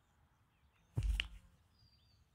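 A body thuds onto grass.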